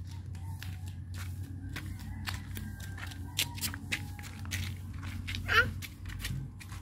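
A young child laughs and squeals happily nearby.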